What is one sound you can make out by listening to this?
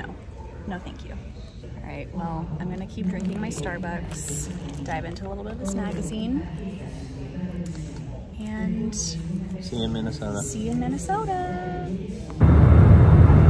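A young woman talks casually, close to the microphone.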